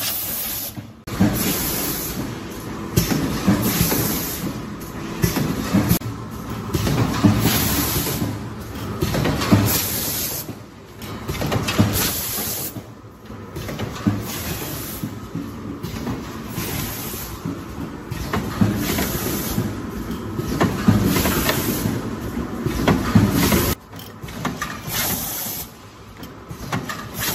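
Air hisses in short bursts from pneumatic parts.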